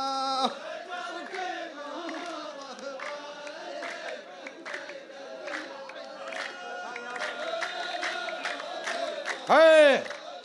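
A group of men clap their hands.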